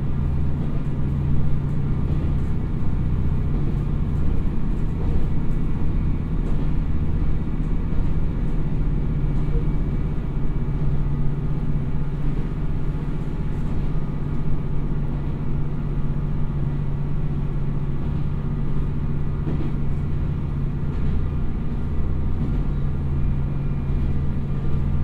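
A diesel train engine rumbles steadily at idle.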